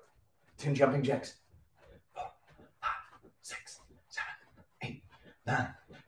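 Feet thump softly on the floor as a man jumps.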